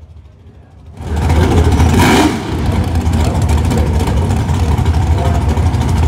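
A car engine idles loudly and rumbles nearby.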